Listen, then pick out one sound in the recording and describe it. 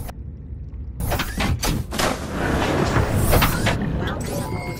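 Water splashes and rushes as a small submarine drops into it.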